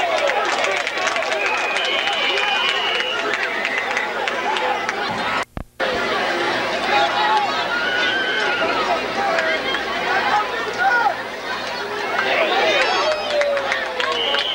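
Football players' pads clash as they collide.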